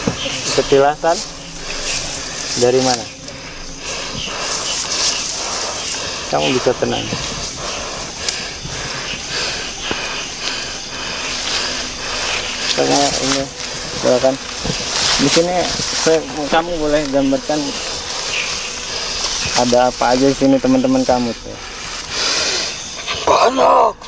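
A man speaks close by with animation, in short bursts.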